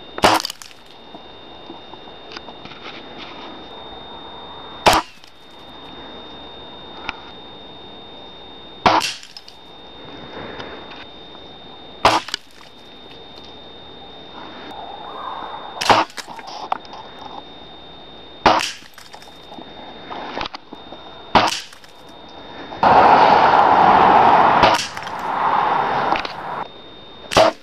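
An air rifle fires with sharp cracks.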